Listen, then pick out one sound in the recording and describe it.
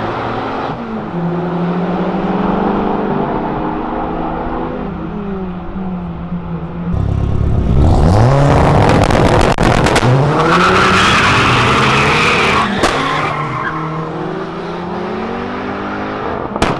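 Car engines roar as cars speed down a track.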